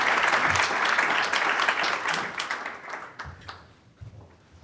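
An audience applauds loudly, then the clapping dies away.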